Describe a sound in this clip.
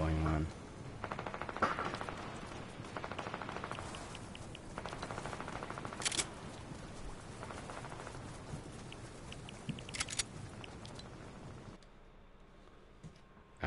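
A middle-aged man talks calmly into a microphone.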